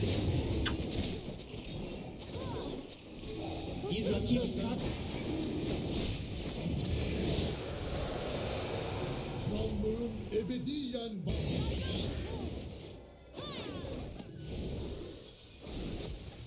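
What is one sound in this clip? Spells whoosh and crackle in a fast fantasy battle.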